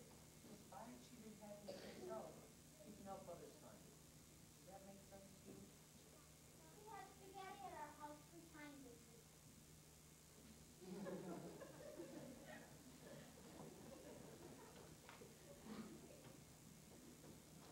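A young performer speaks expressively in a large echoing hall.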